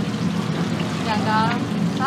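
A spoon scrapes against a metal bowl.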